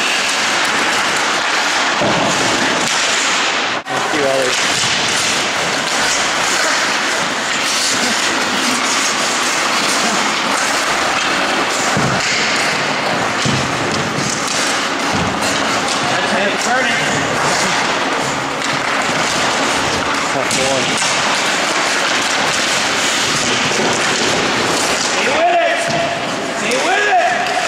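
Skates scrape and carve on ice.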